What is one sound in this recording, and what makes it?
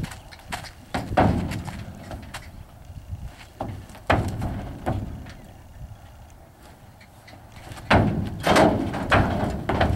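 Hooves clomp on a hollow trailer floor.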